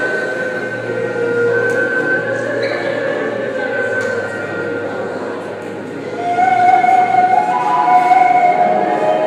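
A group of people sing slow, held notes together in a large hall.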